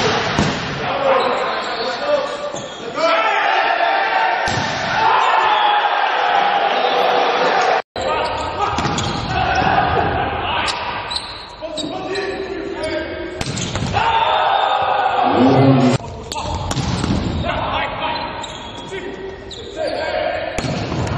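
A volleyball is struck hard, with thuds echoing in a large hall.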